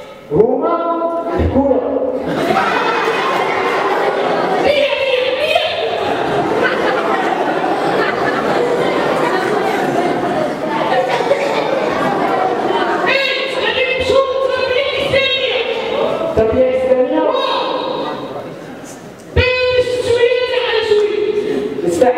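A young girl chants and recites loudly through a microphone.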